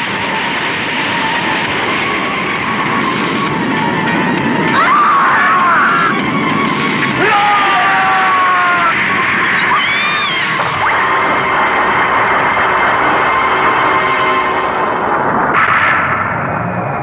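A loud rumbling blast roars and crackles.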